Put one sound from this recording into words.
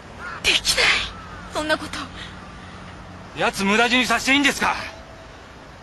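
A man speaks angrily, close by.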